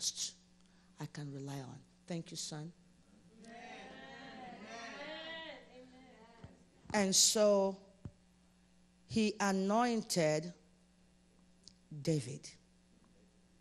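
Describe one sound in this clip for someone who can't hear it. A woman speaks with feeling into a microphone, heard over loudspeakers in a reverberant room.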